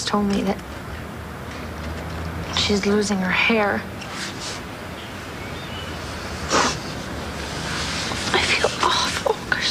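A young woman speaks softly and emotionally close by.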